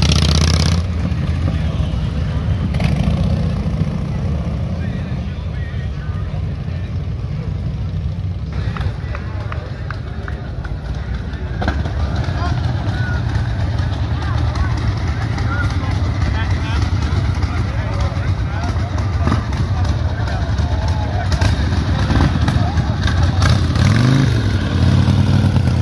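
Motorcycle engines rumble and idle loudly close by.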